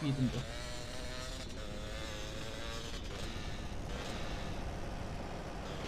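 A motorbike engine hums steadily at speed.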